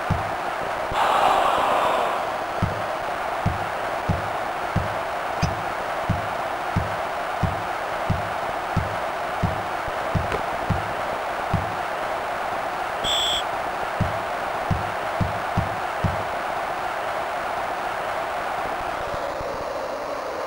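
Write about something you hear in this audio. A crowd murmurs and cheers steadily in a large arena.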